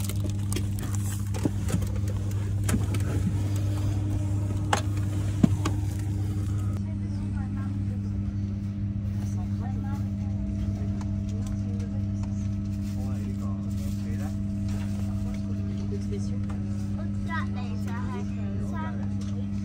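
A plane's engines drone steadily in the cabin.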